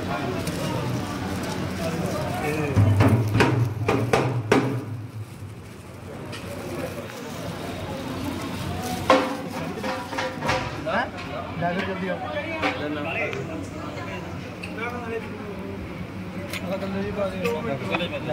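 A crowd of men chatter nearby.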